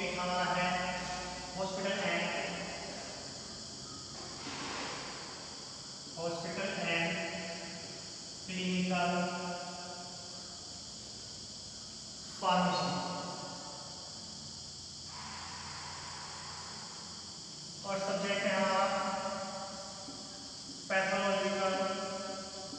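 A man speaks calmly, as if explaining.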